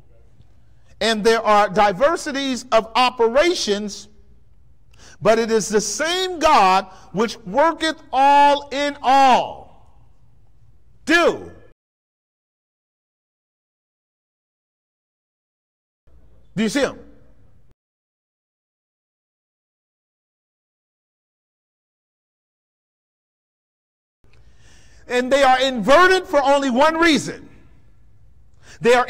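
A man preaches with animation through a microphone, pausing between phrases.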